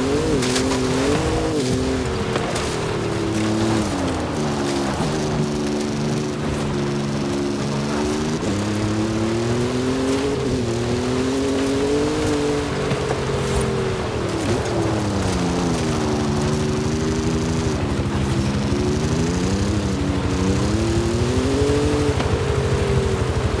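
A car engine roars, revving up and down through the gears.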